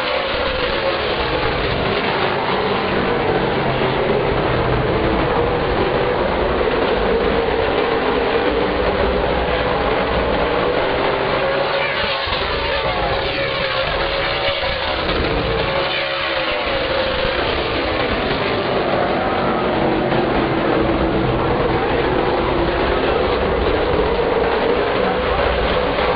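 Race car engines roar loudly as the cars speed around the track.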